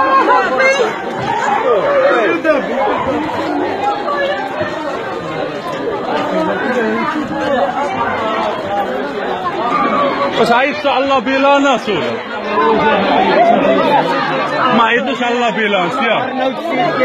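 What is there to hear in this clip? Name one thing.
A crowd of men and women talk and shout excitedly all around, close by.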